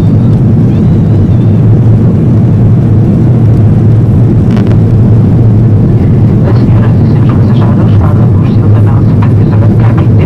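Jet engines roar with a steady low rumble inside an airliner cabin.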